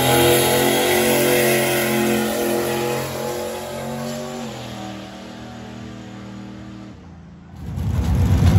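A race car engine roars down the track and fades into the distance.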